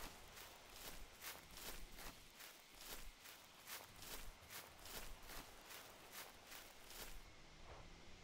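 Footsteps thud quickly and steadily over grassy ground.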